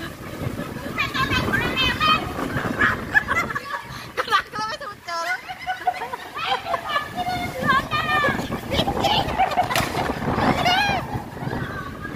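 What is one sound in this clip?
Women shout and scream close by.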